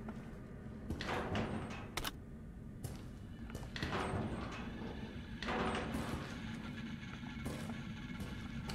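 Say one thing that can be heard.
Metal locker doors creak open and clang.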